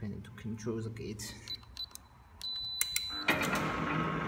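A keypad beeps as its buttons are pressed.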